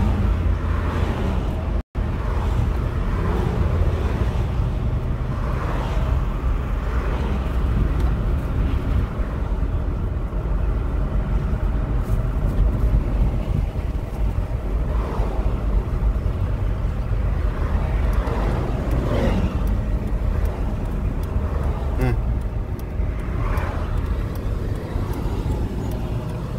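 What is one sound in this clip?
A car engine hums and tyres rumble steadily on the road from inside the car.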